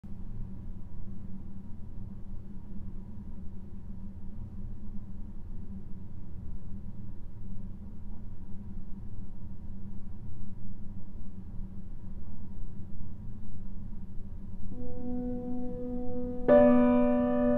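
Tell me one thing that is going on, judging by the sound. A low electronic drone pulses steadily.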